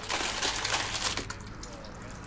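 Milk pours into a bowl of cereal.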